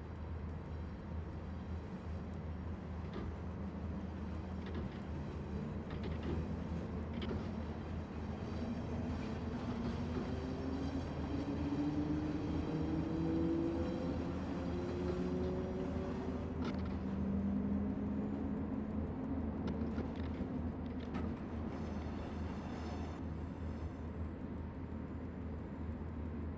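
Train wheels rumble and click over the rails.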